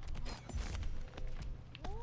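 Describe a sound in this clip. An electric energy weapon zaps and crackles in a game.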